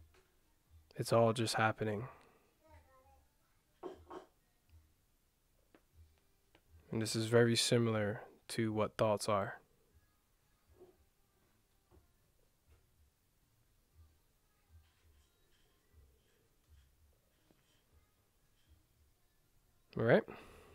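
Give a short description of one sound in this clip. A young man speaks calmly and close to a microphone, in short bursts with long pauses.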